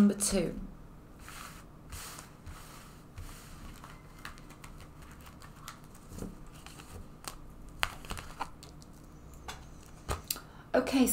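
Cards rustle and tap softly as hands shuffle and lay them down.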